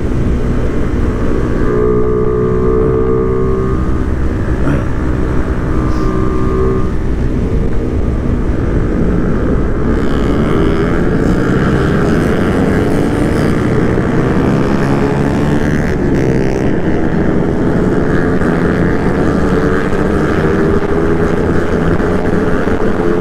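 A motorcycle engine hums steadily up close at speed.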